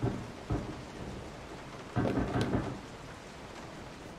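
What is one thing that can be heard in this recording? A telephone handset clunks down onto its cradle.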